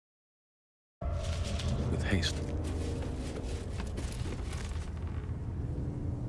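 Footsteps scuff on stone.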